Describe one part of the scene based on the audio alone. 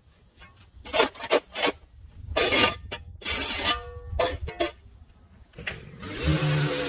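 A spade chops into turf with sharp thuds.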